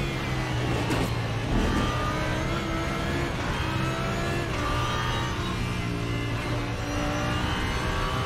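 A racing car engine roars steadily, rising and dropping in pitch as gears change.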